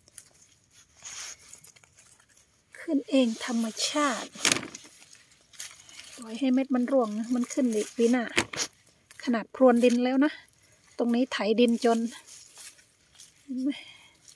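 Leafy plants rustle as a hand picks tomatoes.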